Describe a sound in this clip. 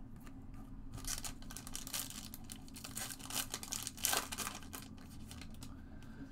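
Foil card packs crinkle in hands.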